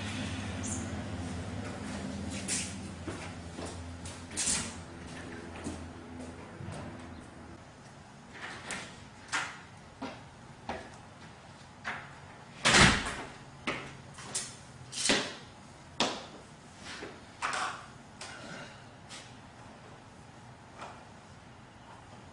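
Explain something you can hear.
Metal exercise equipment clanks and thumps on a concrete floor.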